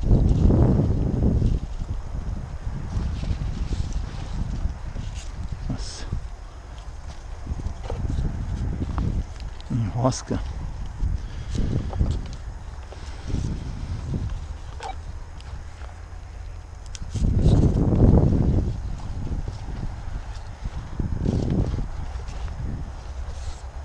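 Footsteps crunch on dry soil.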